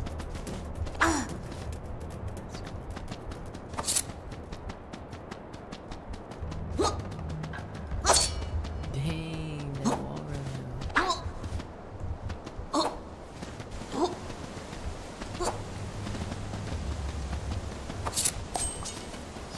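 Sharp swooshes and thuds sound as a small game character jumps about.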